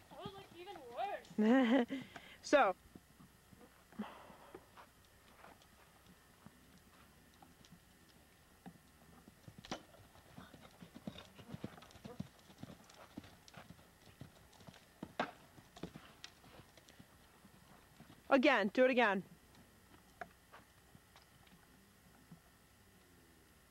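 A horse's hooves thud on soft sand at a canter.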